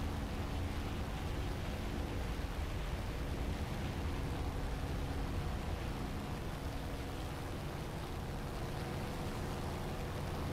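Twin propeller engines drone steadily at low pitch.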